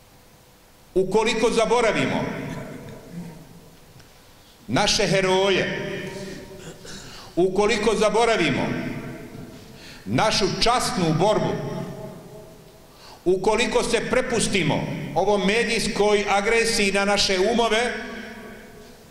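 A middle-aged man speaks with animation into a microphone, heard through loudspeakers in an echoing hall.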